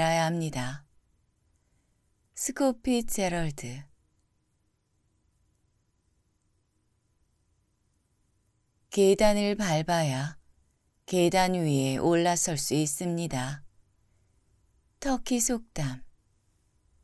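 A person reads out calmly and closely into a microphone, with pauses.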